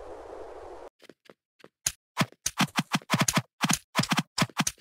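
Sharp hit sounds ring out again and again as a sword strikes.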